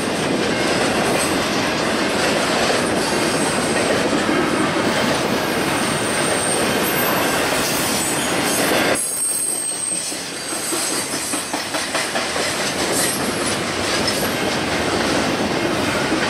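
Steel wheels squeal and screech on the rails.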